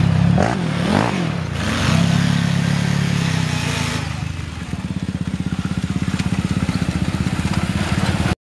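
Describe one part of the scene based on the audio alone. A quad bike engine revs loudly, then chugs steadily close by.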